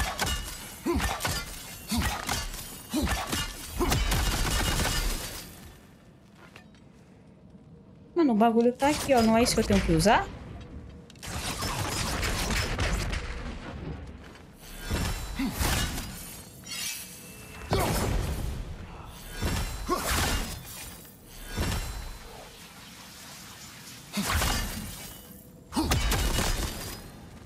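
An axe thuds and clangs against wood.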